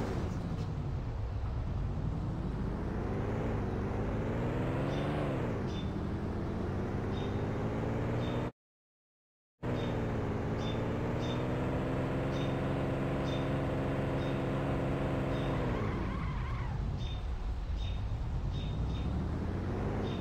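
A van's engine hums and revs, rising and falling in pitch.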